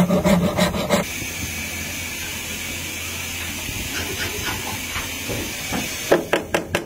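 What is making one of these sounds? Sandpaper rubs steadily over wood.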